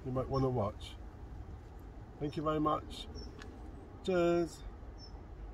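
A middle-aged man speaks calmly and close by, in short phrases.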